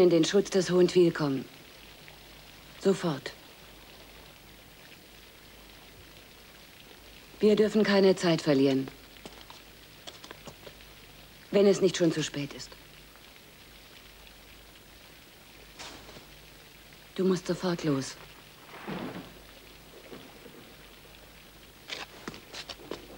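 A man speaks quietly and intently, close by.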